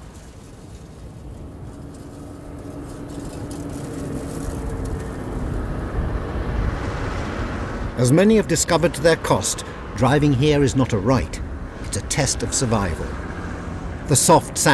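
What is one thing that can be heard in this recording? A vehicle engine rumbles, growing louder as it approaches.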